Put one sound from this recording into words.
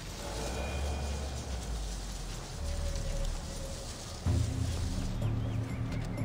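Plants rustle as someone creeps through tall flowers.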